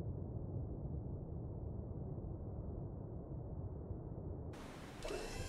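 A deep, muffled underwater rumble drones steadily.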